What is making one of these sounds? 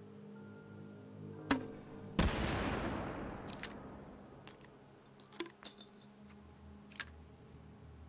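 A rifle clicks and clacks as it is handled.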